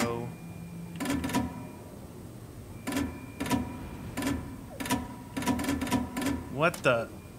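Short electronic clicks and beeps sound in quick bursts.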